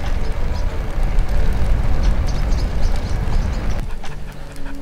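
Wind blows loudly outdoors.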